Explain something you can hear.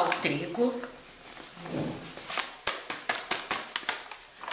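Flour pours from a paper bag into a bowl with a soft rustling hiss.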